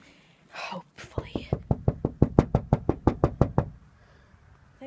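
Fingers tap rapidly on something close by.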